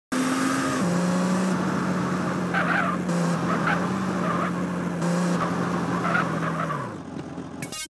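A car engine hums steadily as a car drives along.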